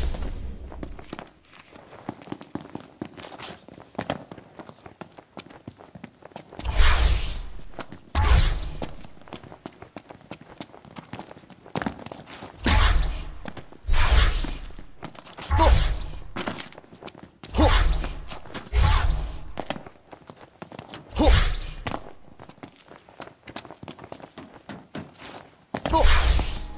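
Quick footsteps run on hard ground.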